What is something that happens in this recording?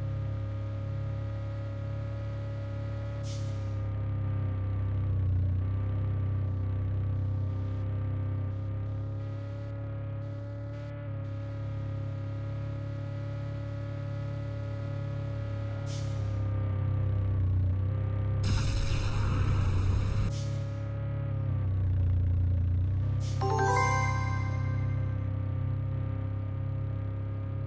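A monster truck engine drones steadily and revs.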